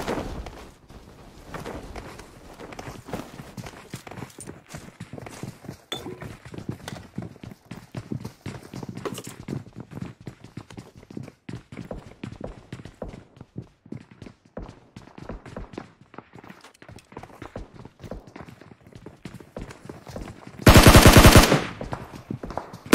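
Footsteps tap quickly on hard floors.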